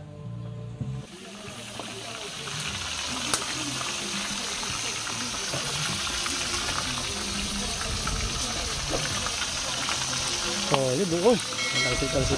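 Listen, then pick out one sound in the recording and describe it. Fish sizzles in hot oil in a pan.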